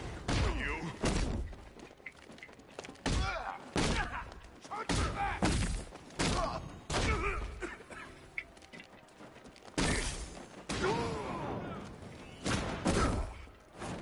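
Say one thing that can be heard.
Heavy punches and kicks land with sharp thuds, over and over.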